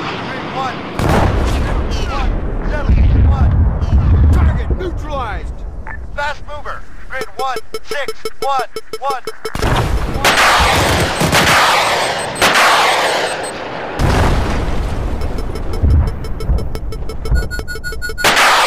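Explosions boom in the distance with a deep rumble.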